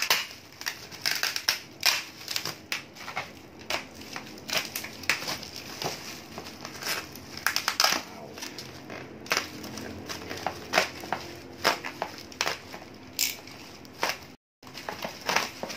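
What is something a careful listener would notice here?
Plastic bubble wrap crinkles and rustles as hands pull it away.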